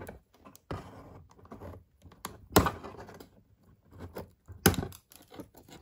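A sharp tool pokes and scrapes through cardboard.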